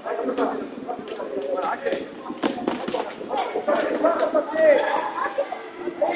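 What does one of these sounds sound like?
A ball thuds on a hard floor as children kick it.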